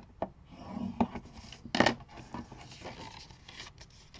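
Paper rustles as it is folded.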